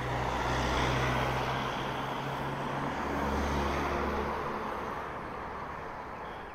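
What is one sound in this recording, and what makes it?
A car drives past close by with a low engine hum.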